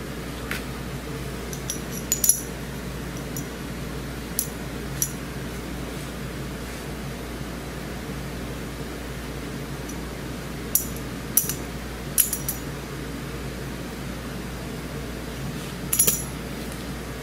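Metal tools clink sharply against a wheel hub.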